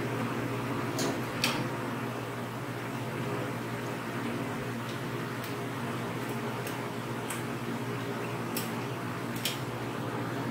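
Metal fittings click and clink as a hand works a valve.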